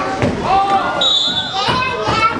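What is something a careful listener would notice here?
A referee blows a sharp whistle.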